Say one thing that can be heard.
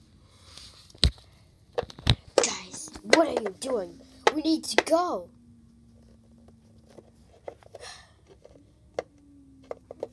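Small plastic toy pieces click and clack against each other.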